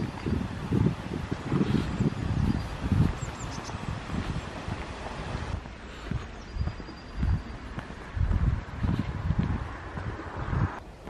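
Footsteps crunch steadily on a snowy path.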